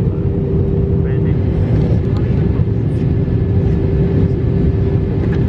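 An aircraft cabin hums with a loud, steady engine drone.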